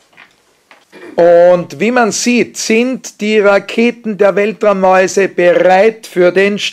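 A group of children sing together loudly, close by.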